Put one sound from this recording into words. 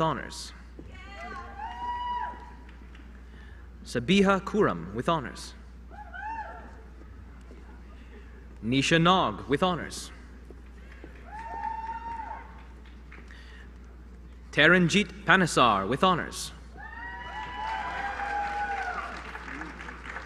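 People in the audience cheer.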